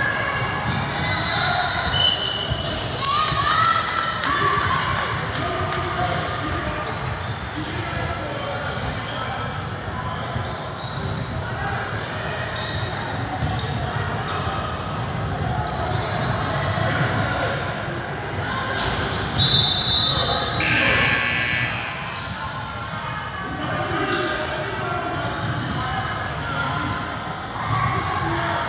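Voices of a crowd chatter throughout in a large echoing gym.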